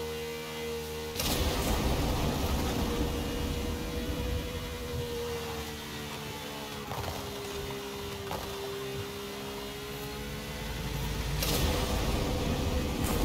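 Tyres rumble over a metal grid surface.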